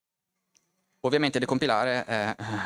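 A man speaks into a microphone, as if giving a talk.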